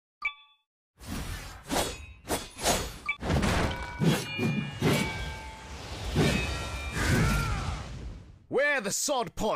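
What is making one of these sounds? A sword swooshes through the air.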